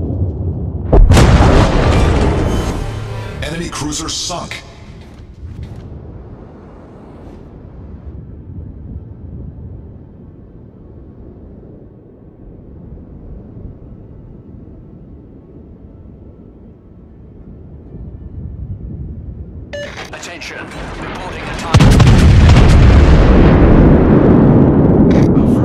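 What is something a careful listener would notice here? Heavy naval guns fire with a loud boom and a rumbling blast.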